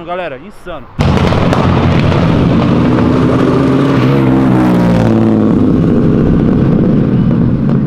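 A loud car engine rumbles and roars close by.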